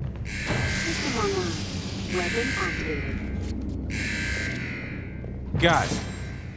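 A heavy metal door grinds and rumbles as it slides open.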